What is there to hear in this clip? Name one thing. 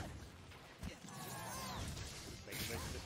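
A large monster roars.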